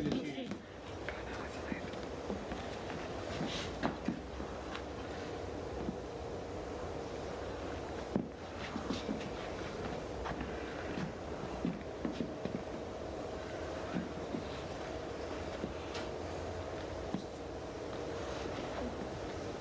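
Shoes scuff and thud on a wooden floor.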